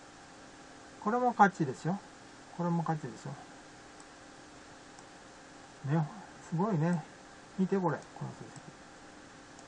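An elderly man speaks calmly in short phrases, close to a microphone.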